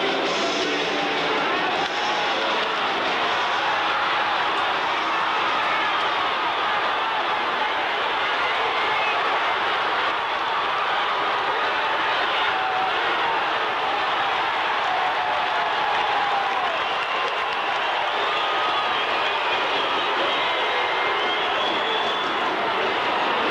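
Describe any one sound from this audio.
A large crowd roars and cheers loudly in an echoing arena.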